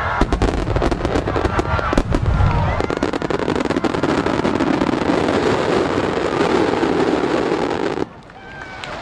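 Fireworks crackle and pop loudly.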